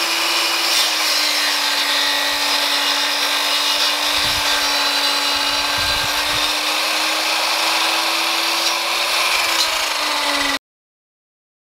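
A power mitre saw whines steadily as it cuts through wood.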